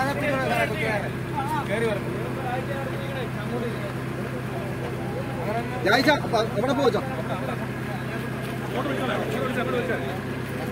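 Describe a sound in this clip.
Several men talk over one another.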